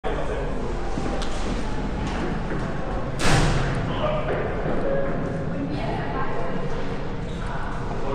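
Footsteps echo through a tunnel.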